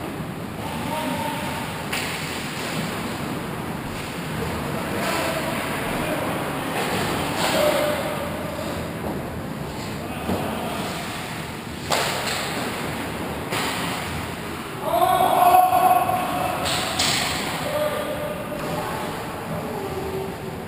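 Men shout to each other in a large echoing hall.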